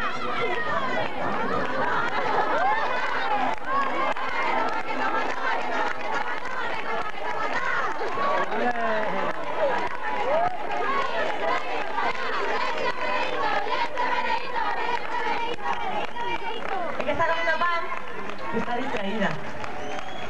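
A woman sings into a microphone through loudspeakers.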